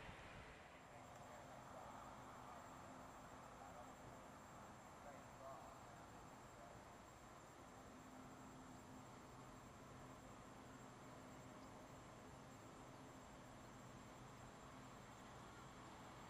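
A diesel locomotive rumbles steadily as it approaches.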